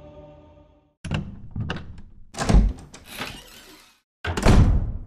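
A wooden door creaks slowly open.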